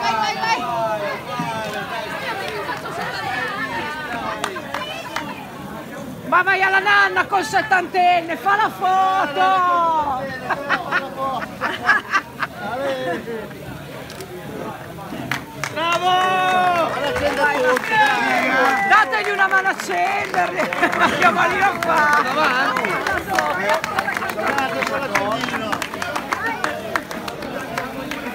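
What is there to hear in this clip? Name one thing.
A group of men and women sing together close by.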